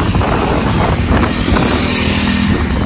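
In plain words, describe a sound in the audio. Another motorcycle engine hums close by.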